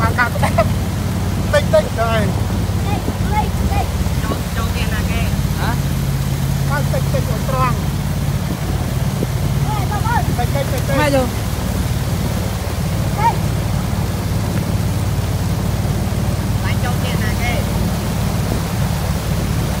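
A boat's motor drones steadily.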